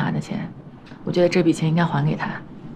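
A young woman speaks earnestly, close by.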